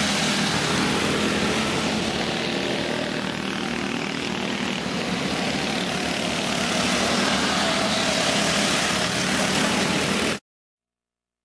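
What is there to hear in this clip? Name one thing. Small kart engines buzz and whine as karts race by outdoors.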